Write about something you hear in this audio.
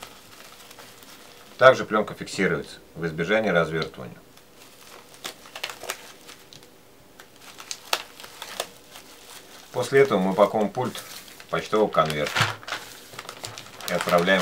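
Bubble wrap and plastic packaging crinkle and rustle in hands.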